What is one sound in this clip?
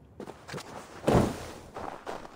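A figure lands with a heavy thud in snow.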